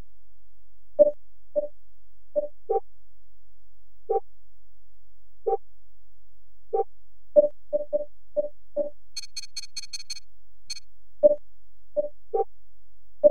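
Short menu blips sound as selections change.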